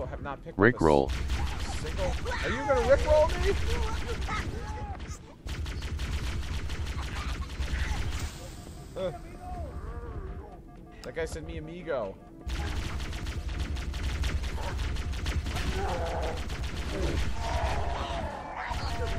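An energy rifle fires in rapid bursts.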